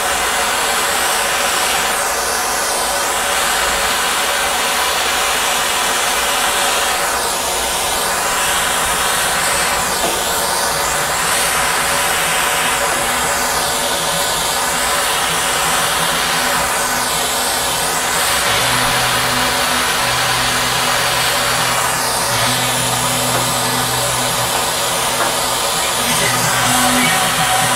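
A gas torch roars steadily with a hissing flame.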